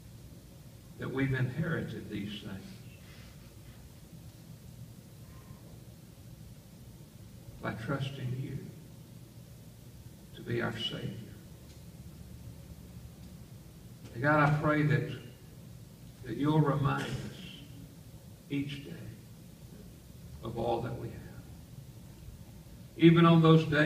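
An elderly man speaks calmly in short phrases with long pauses.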